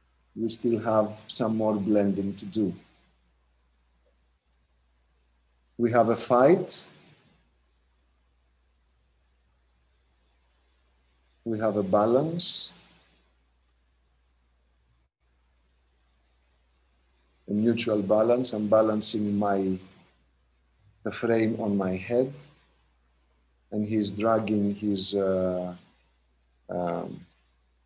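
A man speaks in short, clear phrases with long pauses between them.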